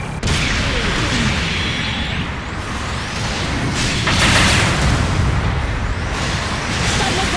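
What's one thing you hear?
A deep mechanical rumble drones throughout.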